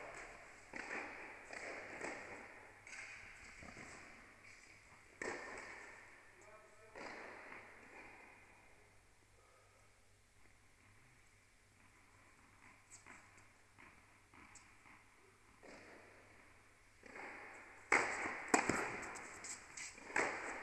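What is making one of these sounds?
A tennis player's shoes squeak and shuffle on the court.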